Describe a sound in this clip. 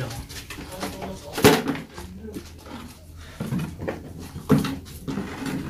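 A plastic chair clatters and scrapes as it is moved.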